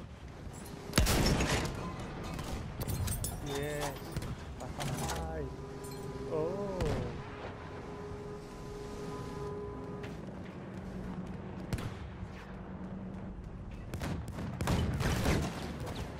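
A heavy ship's gun fires with loud booms.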